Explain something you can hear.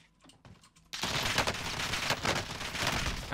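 Gunshots crack from a rifle.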